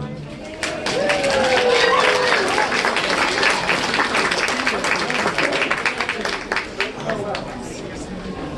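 An audience applauds loudly, then the clapping fades.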